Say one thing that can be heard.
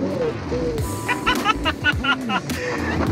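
A young woman laughs loudly inside a car.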